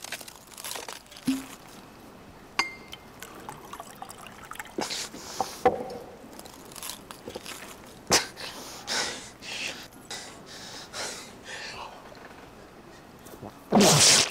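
Glass clinks against a wooden table.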